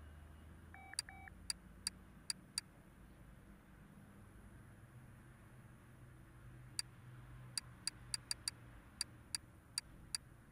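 Short electronic clicks tick in quick succession.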